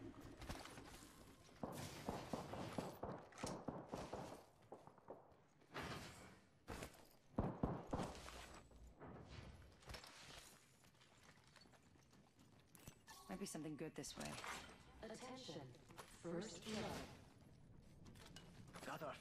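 Quick footsteps run across hard floors.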